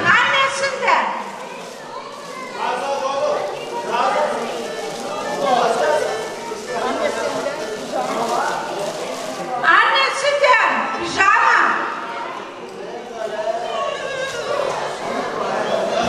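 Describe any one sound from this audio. Several women chatter nearby.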